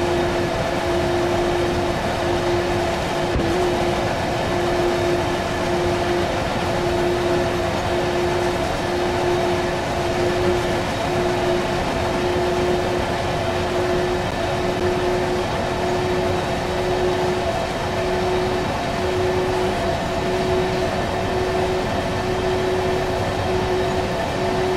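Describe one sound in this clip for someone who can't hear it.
A train engine hums steadily as a freight train rolls along the track.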